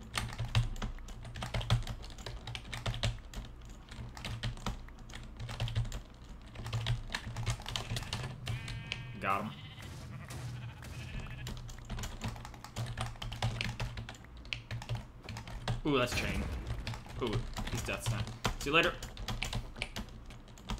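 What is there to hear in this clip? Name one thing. Quick footsteps patter on the ground in a video game.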